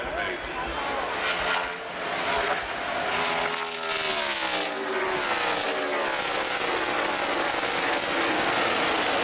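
Race car engines roar loudly as cars speed past, their pitch sliding down.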